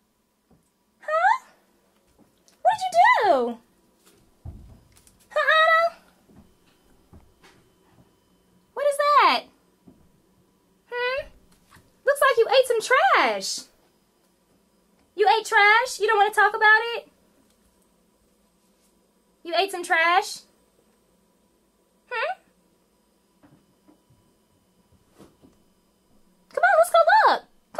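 A small dog whines and yelps in short, high bursts.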